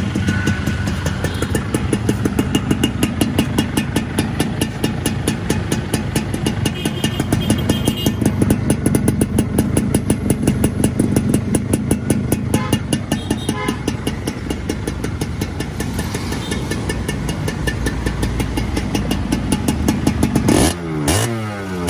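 A motorcycle engine idles close by with a fast, rattling beat.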